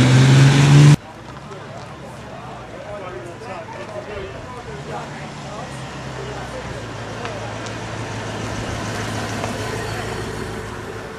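Car engines rumble slowly past at low speed.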